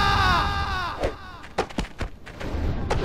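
Punches thud and smack in a fist fight.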